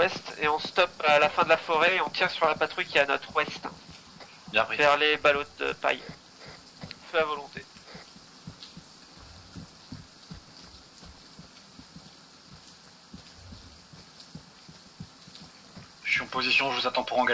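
Footsteps swish and crunch through grass and undergrowth.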